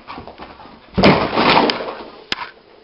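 A dog crashes into a wall with a loud thud.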